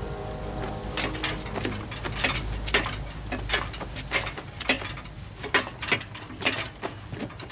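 Footsteps tread on a hard floor at an even pace.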